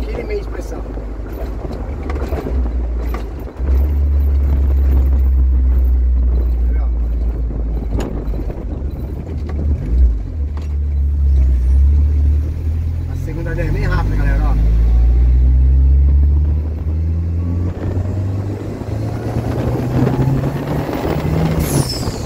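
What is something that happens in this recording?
Road and wind noise rushes past an open window.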